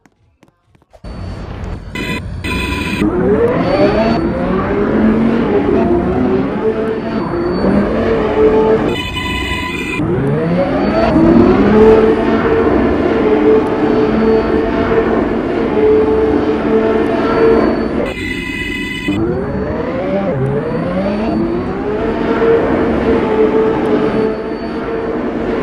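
An electric subway train's motors whine, rising in pitch as it speeds up along the track.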